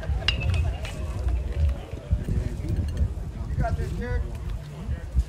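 Men call out faintly across an open field.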